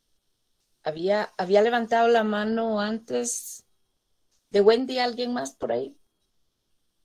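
An elderly woman speaks calmly over an online call.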